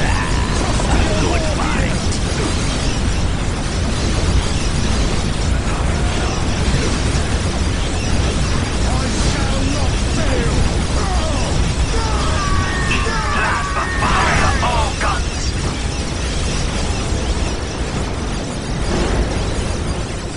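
Flames roar from a flamethrower.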